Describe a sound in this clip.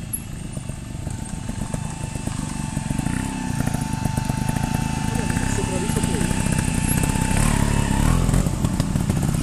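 A motorbike engine hums and grows louder as the bike rides closer.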